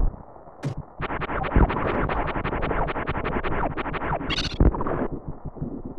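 A game blaster fires rapid bursts of electronic shots.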